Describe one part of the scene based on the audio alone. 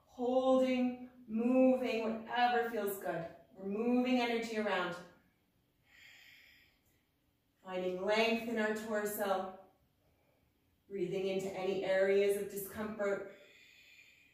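A woman speaks calmly and slowly, giving instructions.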